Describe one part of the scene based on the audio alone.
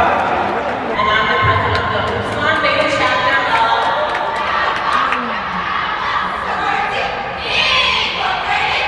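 A young woman speaks into a microphone over loudspeakers in a large echoing hall.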